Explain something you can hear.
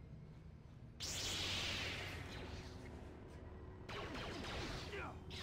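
A lightsaber hums and buzzes loudly.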